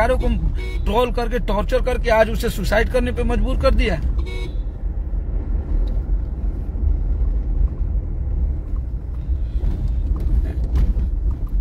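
A car engine rumbles low and steady.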